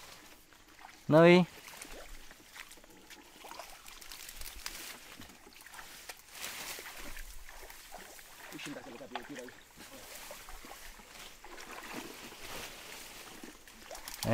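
Feet splash in shallow muddy water.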